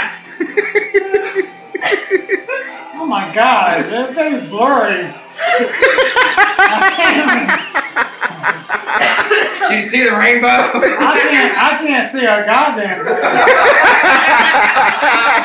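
Several men talk and laugh nearby.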